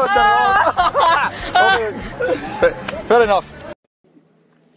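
Men laugh loudly.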